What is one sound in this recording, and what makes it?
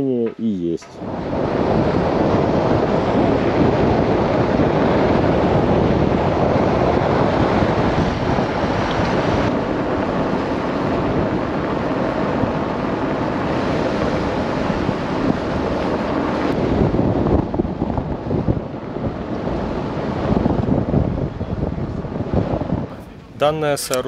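Wind rushes and buffets loudly against the microphone outdoors.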